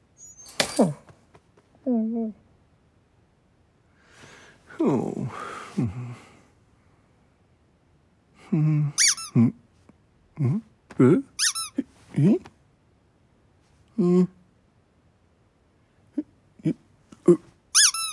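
A cat meows repeatedly.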